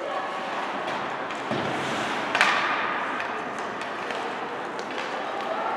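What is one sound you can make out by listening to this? Sticks click against a puck.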